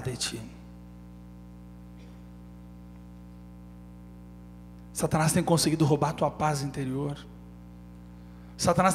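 A young man speaks with feeling into a microphone, heard through a loudspeaker, in short bursts.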